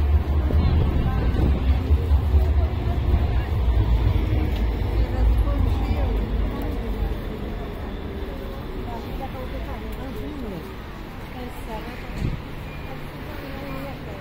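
Voices of a crowd of men and women chatter nearby outdoors.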